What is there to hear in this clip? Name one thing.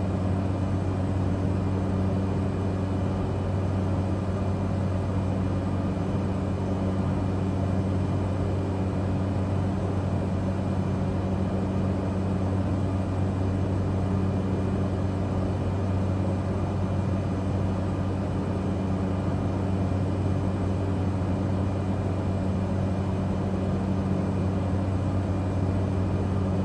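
A small plane's propeller engine drones steadily inside the cockpit.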